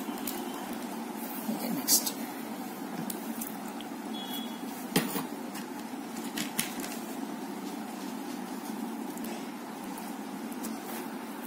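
Plastic cords rustle and tick as hands weave them.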